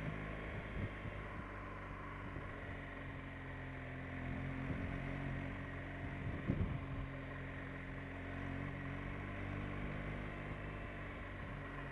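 A motorcycle engine hums steadily close by.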